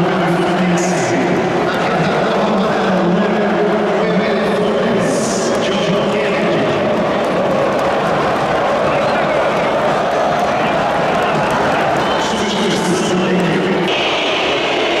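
A large stadium crowd roars and chants loudly.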